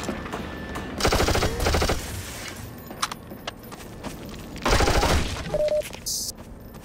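A gun fires in loud, echoing bursts.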